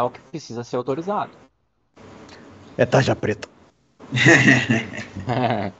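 Several men talk with animation over an online call.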